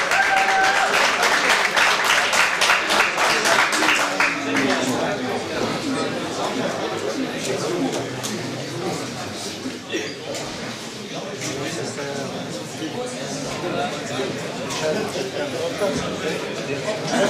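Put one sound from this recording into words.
A middle-aged man talks firmly and close by.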